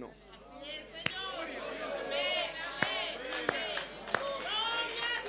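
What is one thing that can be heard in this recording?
A man claps his hands slowly.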